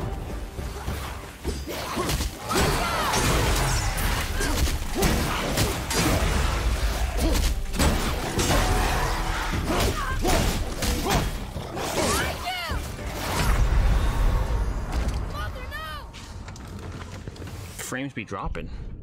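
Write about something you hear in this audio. Game combat sound effects of weapons striking and creatures snarling clash loudly.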